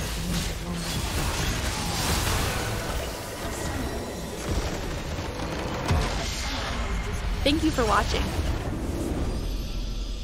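Game battle effects crash and explode in a loud clash.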